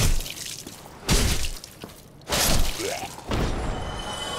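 A sword slashes and strikes an enemy with heavy impacts.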